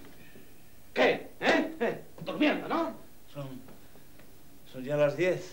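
A man speaks with agitation, close by.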